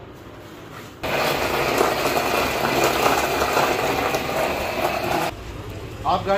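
An electric mixer whirs loudly, churning liquid in a metal pot.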